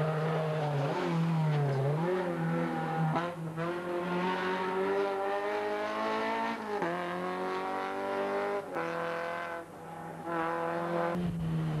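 A rally car engine roars at high revs, rising in pitch and dropping sharply with each gear change.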